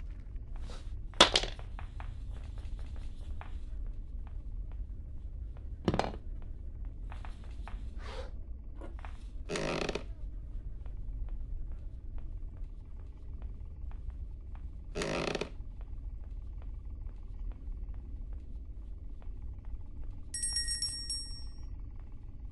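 Footsteps creak and thud on wooden stairs and floorboards.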